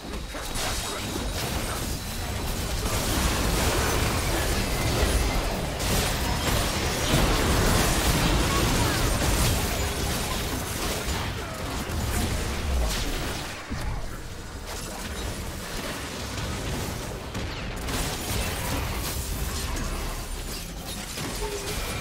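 Game spell effects crackle, boom and whoosh during a fight.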